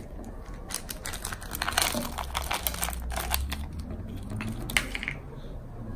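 Small plastic charms rattle as they are poured into a jar.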